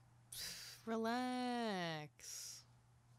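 A woman sings a rising and falling note up close.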